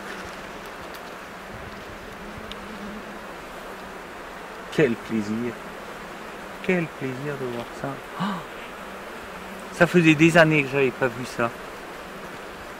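Bees buzz around a hive.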